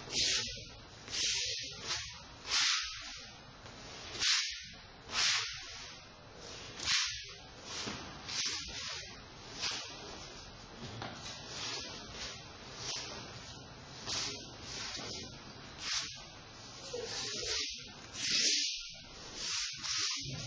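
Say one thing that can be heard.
A wooden sword swishes through the air again and again.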